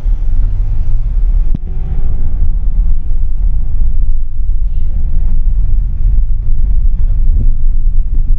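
Motorbikes buzz past nearby.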